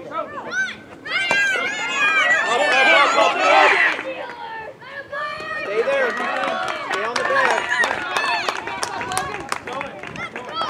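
Young players shout and cheer excitedly outdoors.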